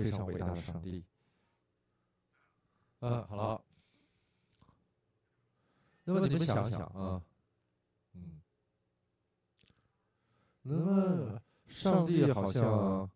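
An older man speaks calmly in short phrases with pauses, heard through a microphone.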